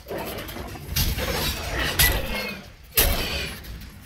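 Electricity crackles and bursts.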